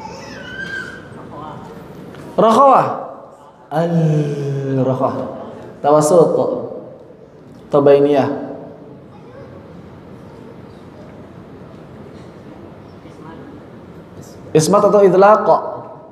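A young man speaks into a microphone in short bursts, calmly, with pauses between phrases.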